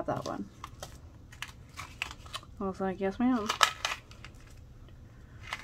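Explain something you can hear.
A plastic packet crinkles as fingers handle it.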